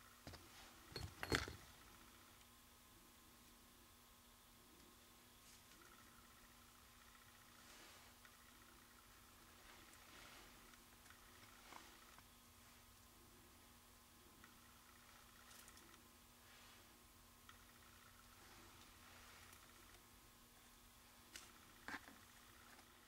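Tweezers tap and click softly against paper.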